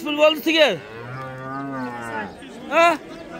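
A cow moos with a long, low call.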